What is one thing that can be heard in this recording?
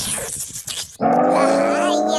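A high-pitched cartoon cat voice squeals playfully.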